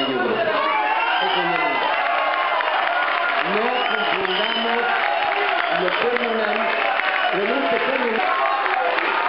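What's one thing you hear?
An elderly man speaks loudly into a microphone, heard through loudspeakers in an echoing hall.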